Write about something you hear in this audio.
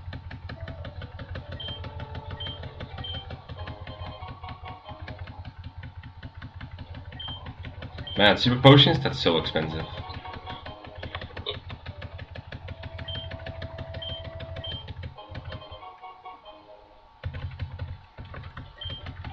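Chiptune game music plays steadily.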